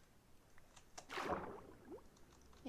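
Water splashes as someone plunges in.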